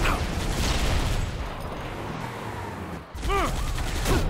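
A mounted gun fires rapid bursts.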